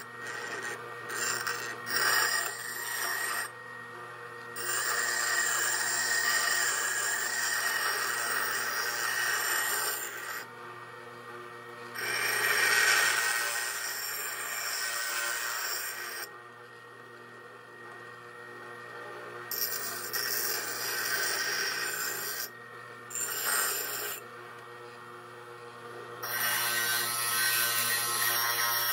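Metal screeches against a grinding wheel in bursts.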